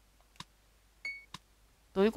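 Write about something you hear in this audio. A short electronic beep sounds.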